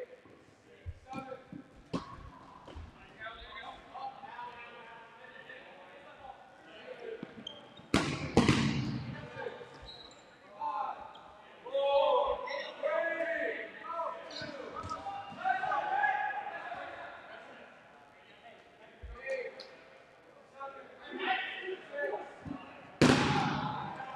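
Dodgeballs smack against bodies and the floor in a large echoing gym.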